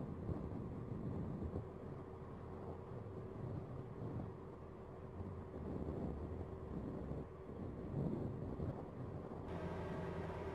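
Distant military vehicles rumble as they drive across open ground.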